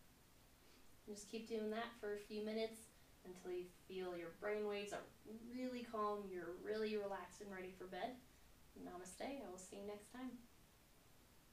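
A young woman speaks calmly and slowly, close by.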